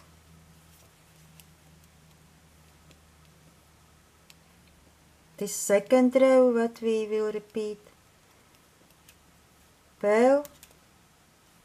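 Metal knitting needles click and scrape softly against each other.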